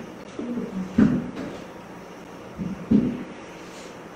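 Something thumps softly on a table.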